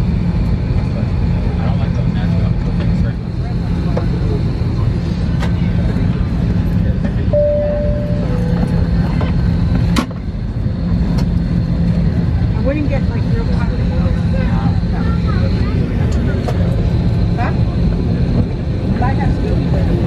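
A jet airliner's cabin hums with a steady low engine drone.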